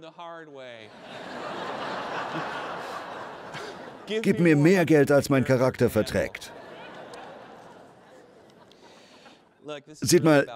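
An audience laughs together.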